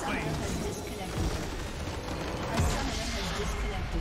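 A structure explodes with a deep crash.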